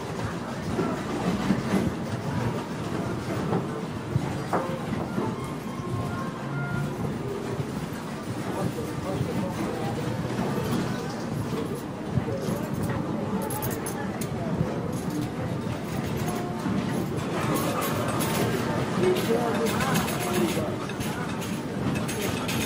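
Slot machines chime and jingle.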